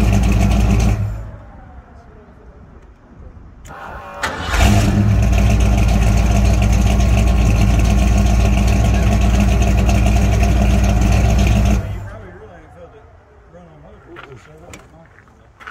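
A 1972 Ford pickup's engine idles with a low exhaust rumble.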